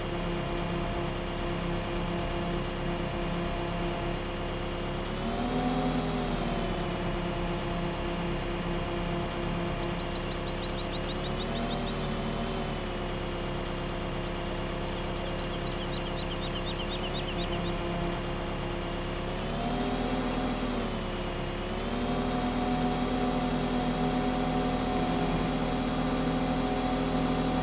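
A diesel engine runs steadily, revving up and down now and then.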